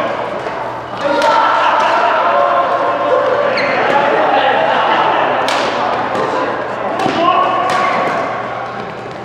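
Men talk and call out during play.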